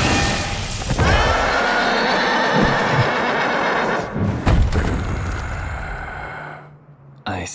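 A huge beast roars.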